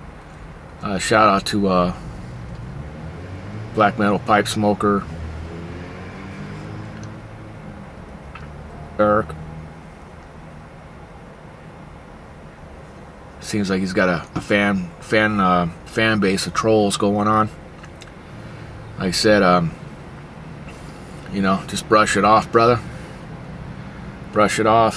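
A man speaks calmly and close to the microphone, in short bursts with pauses.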